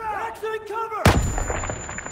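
Gunfire cracks loudly and echoes.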